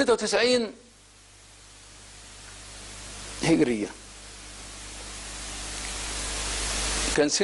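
A middle-aged man speaks calmly into a microphone, in short bursts with long pauses.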